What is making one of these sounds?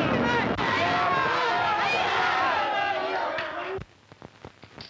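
A crowd of men shouts loudly.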